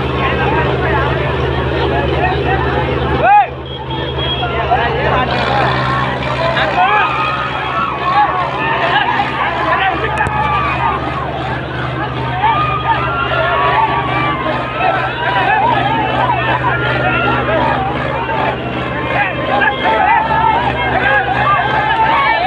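A large crowd of young men cheers and shouts loudly outdoors.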